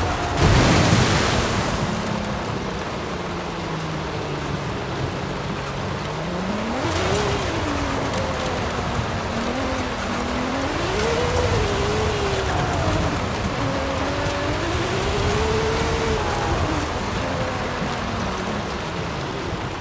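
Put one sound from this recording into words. Tyres crunch and skid over gravel.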